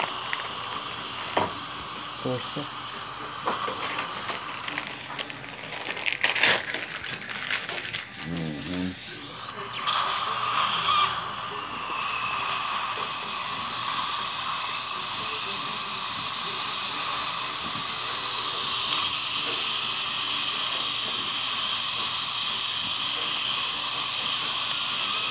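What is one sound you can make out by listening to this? A suction tube hisses steadily close by.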